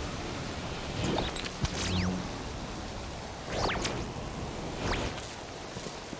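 Sharp electronic whooshes swoop up and down again and again.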